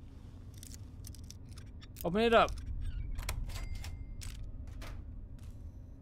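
A lock pick scrapes and clicks inside a lock.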